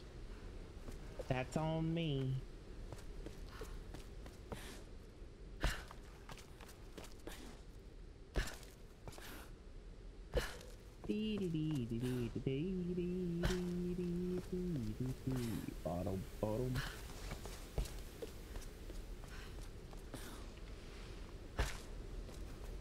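Footsteps thud on hard ground.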